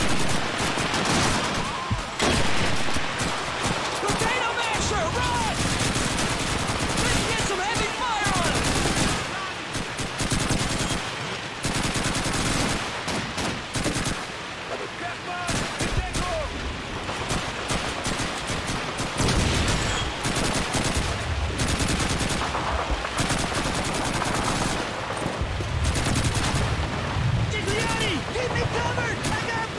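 Rifle shots crack again and again.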